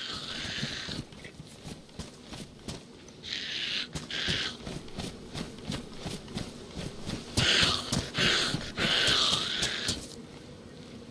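Footsteps crunch quickly through grass.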